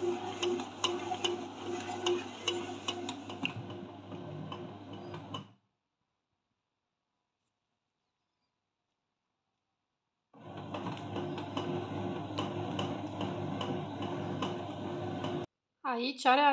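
A bread machine motor hums steadily as it kneads dough.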